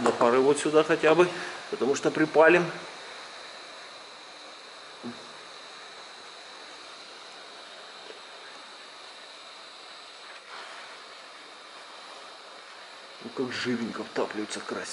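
A plastic tab creaks and clicks as fingers pry at it.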